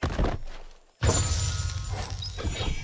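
A fiery burst roars and crackles.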